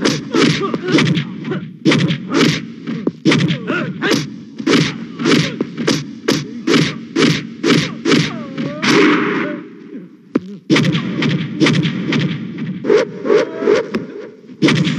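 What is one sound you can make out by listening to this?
A man shouts and groans in pain.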